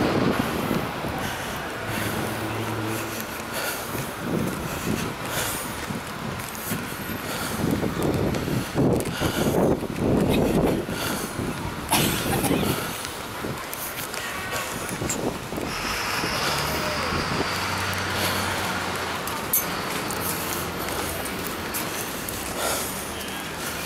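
Traffic hums steadily in the distance, outdoors.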